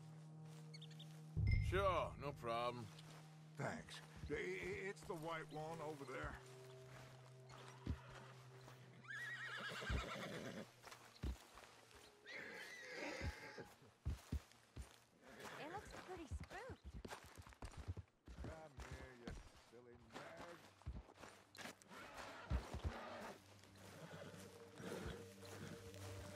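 Footsteps walk through grass and over gravel.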